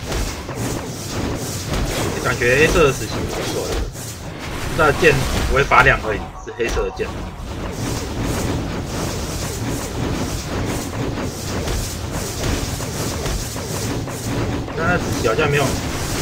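Magic blasts and weapon strikes crackle and clash in a game battle.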